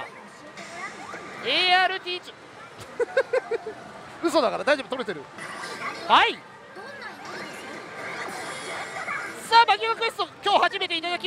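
A slot machine plays bright electronic jingles and sound effects.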